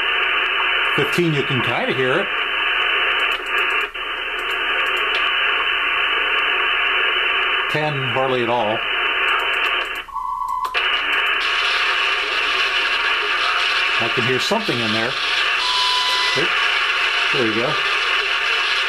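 Whistling tones glide as a software radio receiver is tuned across shortwave bands.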